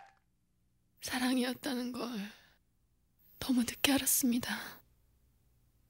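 A young woman sobs and cries close by.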